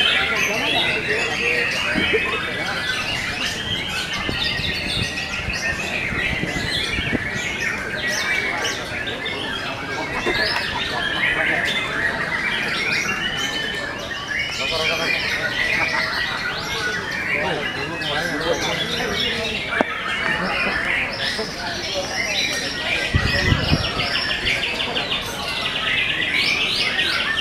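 Caged songbirds chirp and sing busily all around.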